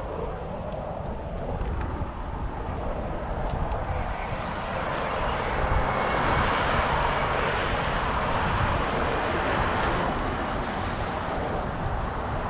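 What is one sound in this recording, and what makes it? Wind blows hard across open ground outdoors.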